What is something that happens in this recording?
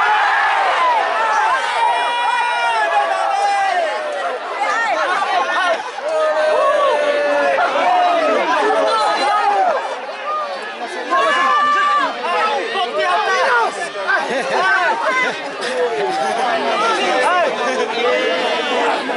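A large outdoor crowd shouts and cheers loudly throughout.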